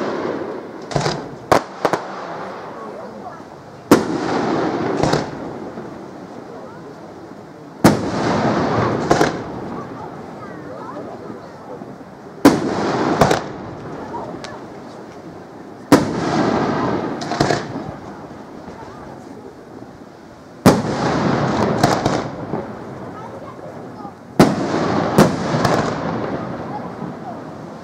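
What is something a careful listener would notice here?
Fireworks burst with loud booms that echo away.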